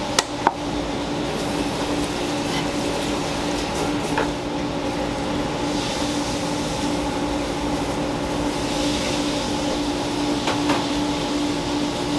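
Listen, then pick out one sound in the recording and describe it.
A knife slices through raw fish on a wooden board.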